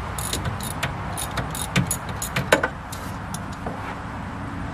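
Metal tools clink and tap against a machine.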